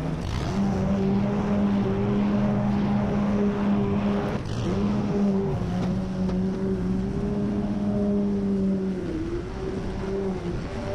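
A petrol lawn mower engine hums steadily close by.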